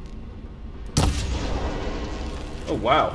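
An arrow strikes a machine with a heavy, booming blast.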